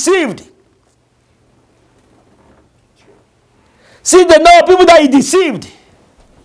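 A man preaches loudly and with passion into a microphone, in bursts with pauses.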